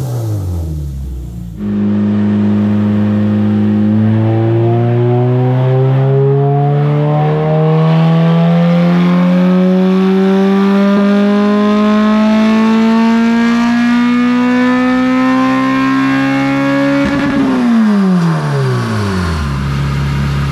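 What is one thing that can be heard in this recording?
A car engine revs up steadily, rising in pitch, then drops back to idle.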